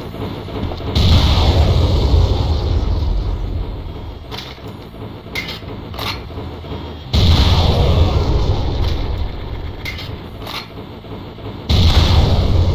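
A rocket launcher fires with a booming blast.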